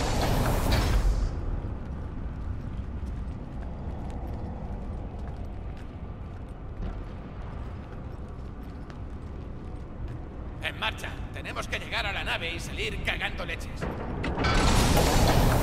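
Footsteps tap steadily on a metal floor.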